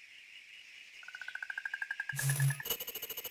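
A short rising chime plays.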